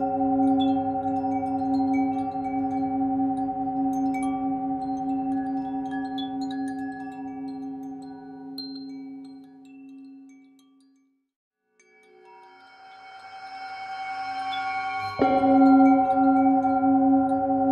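A singing bowl hums with a deep, steady ringing tone that slowly fades, then swells again.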